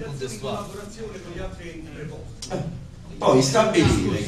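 A man speaks into a microphone in a room that echoes.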